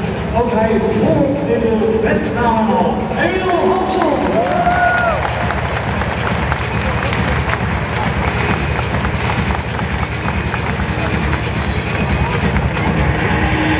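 A large crowd cheers and chatters in a huge open stadium.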